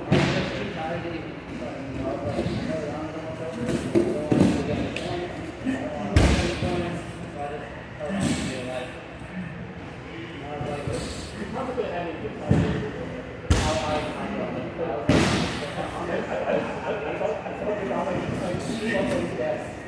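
Bare feet shuffle and squeak on a mat.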